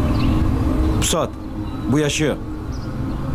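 A man speaks briefly in a low, tense voice close by.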